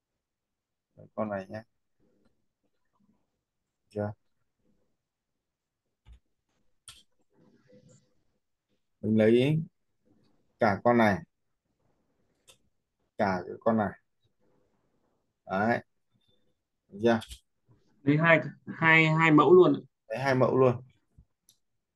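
A man talks calmly into a microphone in short bursts.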